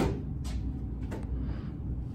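A broom sweeps across a hard floor.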